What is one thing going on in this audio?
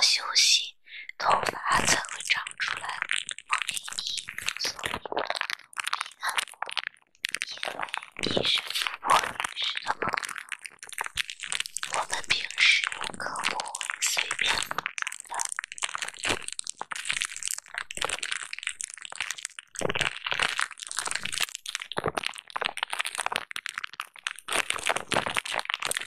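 Plastic bubble wrap crinkles and pops under fingertips, close up.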